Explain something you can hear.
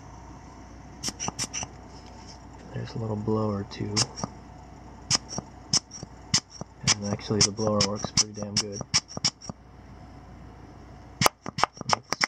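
A small metal tool clicks and taps against a plastic part.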